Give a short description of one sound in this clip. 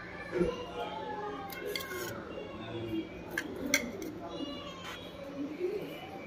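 A metal plate clinks on a stone surface.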